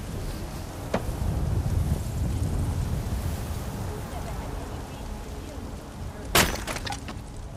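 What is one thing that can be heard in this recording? An axe splits a log with a sharp crack.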